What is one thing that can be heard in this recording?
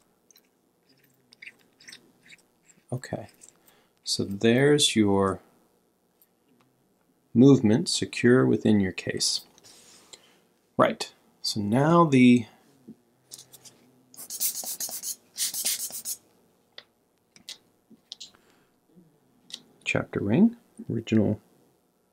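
Small metal watch parts click and tap softly as they are handled.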